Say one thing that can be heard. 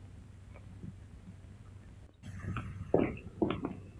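Footsteps hurry across a hard floor.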